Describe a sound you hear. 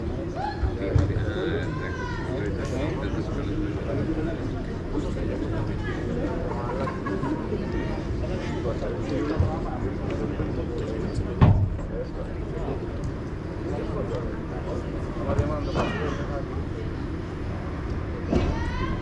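Padel rackets strike a ball with sharp pops.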